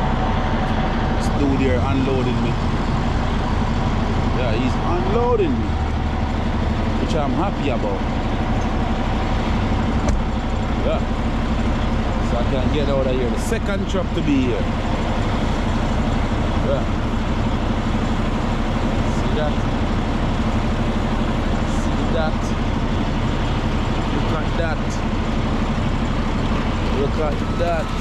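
A man talks close by, calmly.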